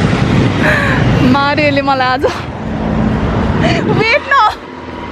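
Traffic rumbles past on a busy street.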